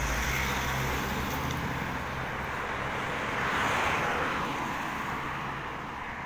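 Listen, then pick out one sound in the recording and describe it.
A van engine hums close by and fades as the van pulls away.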